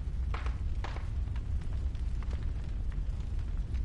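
Soft menu clicks tick as a selection moves.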